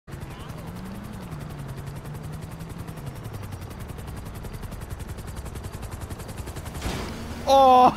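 Quick footsteps slap on pavement as someone runs.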